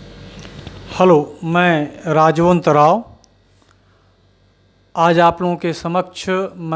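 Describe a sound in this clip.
An elderly man speaks calmly into a handheld microphone, heard close up.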